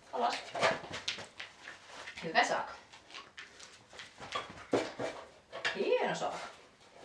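A woman speaks nearby in short, upbeat bursts.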